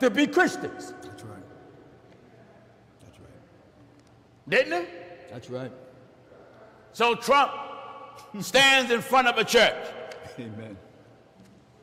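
A man preaches loudly and with emphasis through a microphone, in a reverberant hall.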